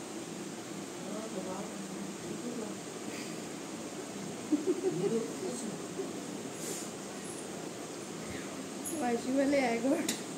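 A young woman talks softly and closely.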